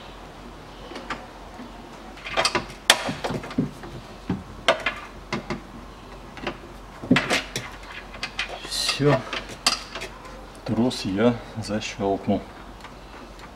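Plastic parts click and rattle inside a car door.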